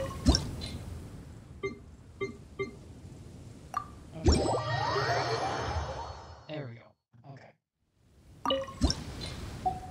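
Short soft chimes sound as menu options are picked.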